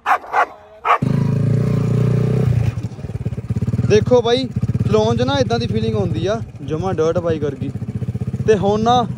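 A small motorbike engine revs up and down while riding.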